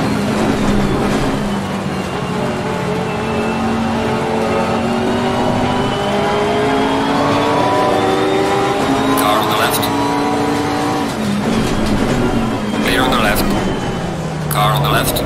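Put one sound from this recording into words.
A racing car engine roars and shifts pitch as it revs through the gears.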